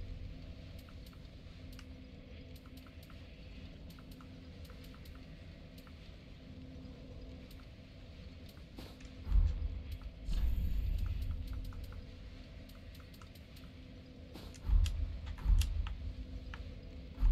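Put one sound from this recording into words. Soft menu clicks tick repeatedly as selections change.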